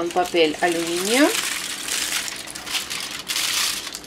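Foil crinkles and rustles close by.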